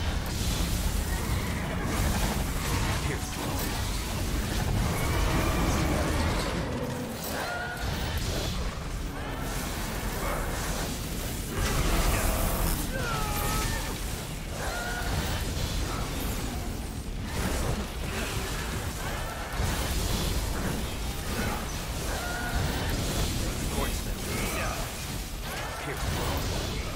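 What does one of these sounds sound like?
Swords slash and clash in quick bursts.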